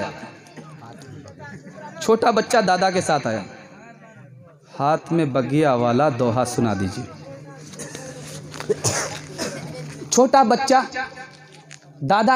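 A man recites melodiously into a microphone, heard through a loudspeaker.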